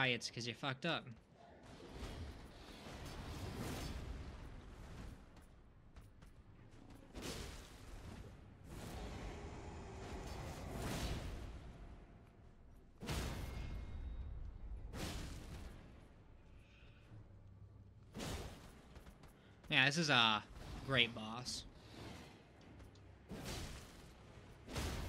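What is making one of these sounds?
Metal weapons clash and strike with sharp, heavy impacts.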